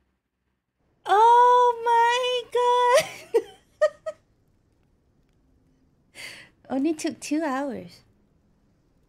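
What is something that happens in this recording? A young woman exclaims in a high, sing-song voice close to a microphone.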